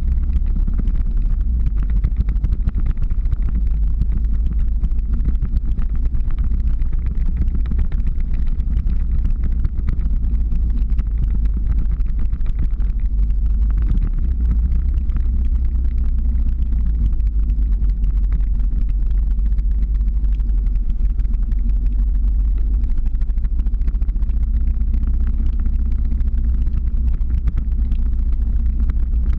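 Skateboard wheels roll and rumble steadily on asphalt.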